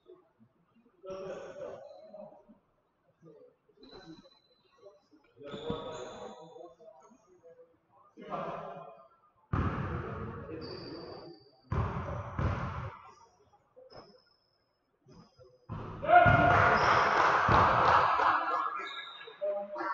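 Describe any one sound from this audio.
Young men talk and call out in a large echoing gym.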